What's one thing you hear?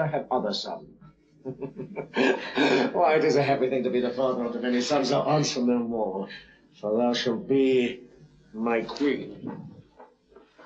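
A man speaks softly and warmly, close by.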